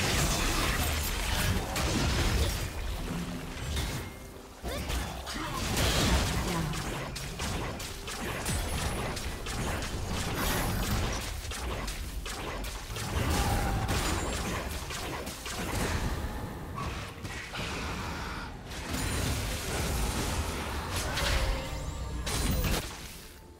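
Game spells blast and crackle in a busy fight.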